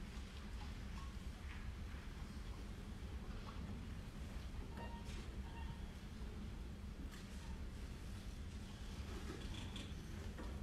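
A piano plays in a large hall.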